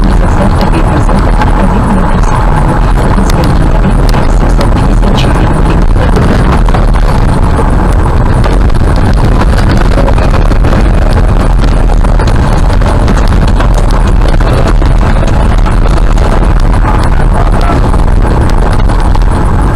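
Tyres crunch and rumble on a gravel road, with stones clicking against the car.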